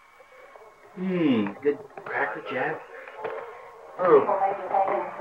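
A woman talks with animation close by.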